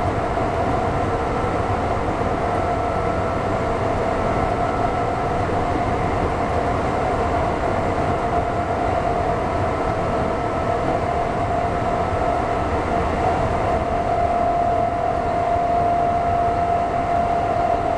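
A subway train rumbles and hums steadily through a tunnel.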